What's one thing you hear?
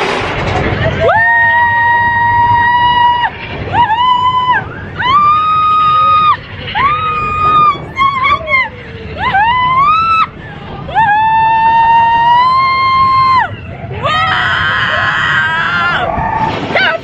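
A young woman screams loudly and excitedly close by.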